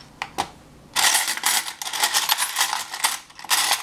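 Metal spoons clink and rattle together as a hand rummages through them.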